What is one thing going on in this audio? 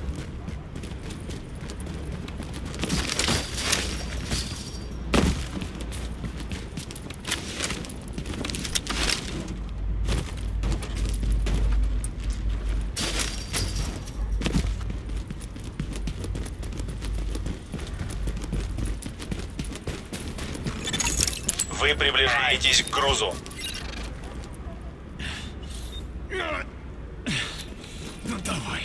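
Footsteps run quickly over hard ground and snow.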